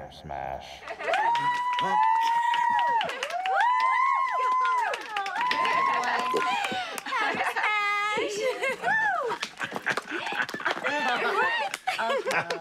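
Young women whoop and cheer loudly.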